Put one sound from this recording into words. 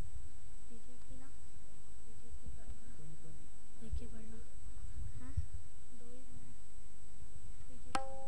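A boy speaks softly into a microphone.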